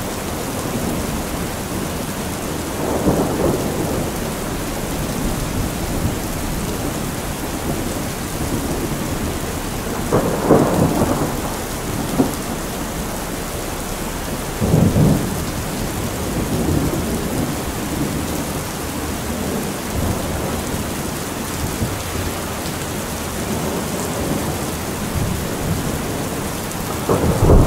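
Water pours and splashes from a roof edge.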